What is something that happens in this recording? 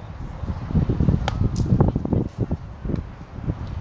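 A softball smacks into a catcher's mitt.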